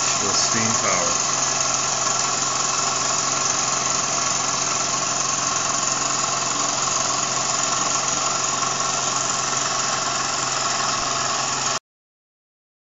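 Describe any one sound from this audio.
A small live-steam model engine hisses as it runs.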